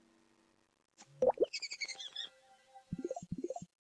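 Bubbles pop with bright chiming game sounds.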